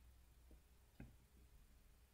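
A playing card lands on the table with a soft click.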